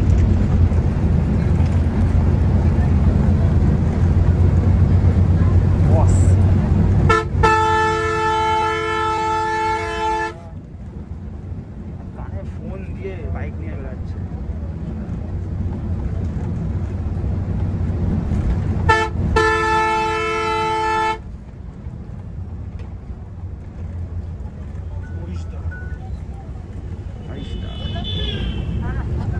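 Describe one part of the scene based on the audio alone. A bus engine rumbles steadily while driving along a road.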